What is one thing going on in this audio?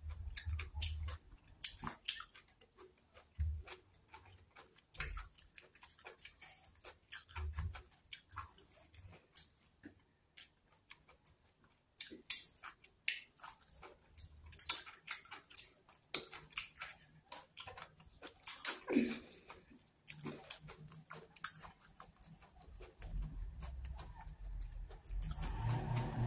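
A woman chews food with wet, smacking mouth sounds close to a microphone.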